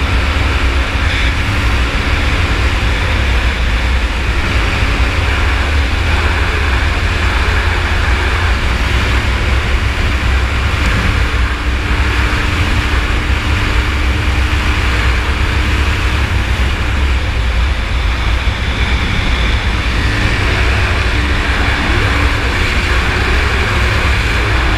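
Wind buffets loudly with a deep, constant rumble.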